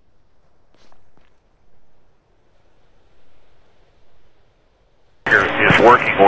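Footsteps walk steadily on hard pavement.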